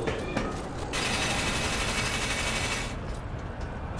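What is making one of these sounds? Metal scrapes and sparks with a harsh hiss.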